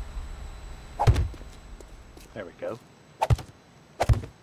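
A stone block thuds heavily into place.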